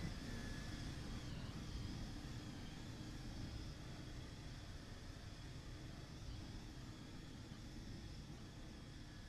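A train's motor hums steadily while idling.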